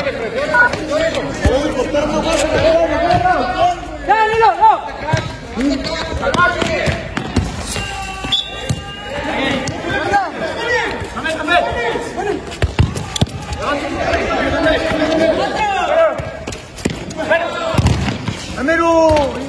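A ball is kicked hard on a concrete court.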